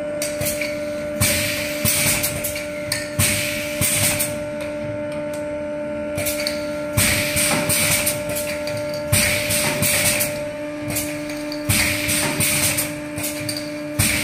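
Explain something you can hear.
Compressed air hisses in bursts from a filling machine.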